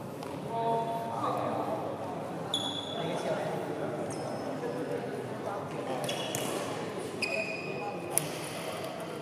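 A racket strikes a shuttlecock with a crisp smack.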